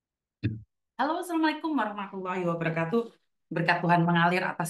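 A woman speaks with animation into a clip-on microphone, heard as if over an online call.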